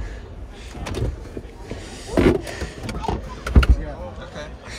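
Plastic parts knock and click as a hand handles them.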